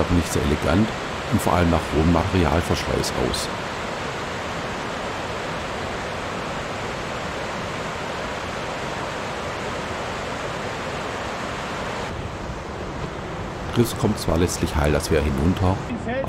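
Rushing water roars steadily over a weir.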